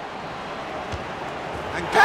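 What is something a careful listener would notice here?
A ball is kicked with a thud.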